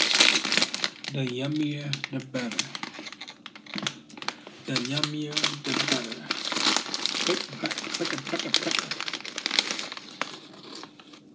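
A plastic snack bag crinkles and rustles.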